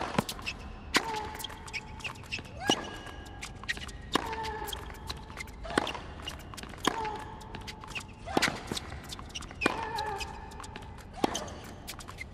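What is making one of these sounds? Tennis players grunt loudly as they hit the ball.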